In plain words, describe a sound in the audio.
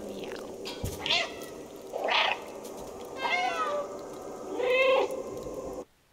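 A cat meows several times, close by.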